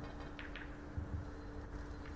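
Billiard balls knock together.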